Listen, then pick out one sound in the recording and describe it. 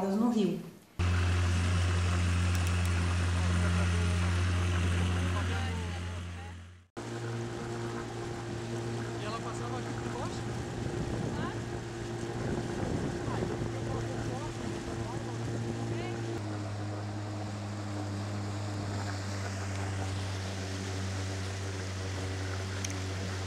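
A boat motor hums steadily.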